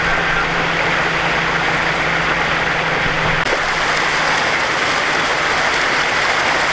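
Water gushes and streams across pavement outdoors.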